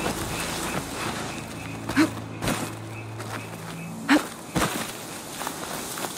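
Footsteps crunch and rustle through grass and dirt.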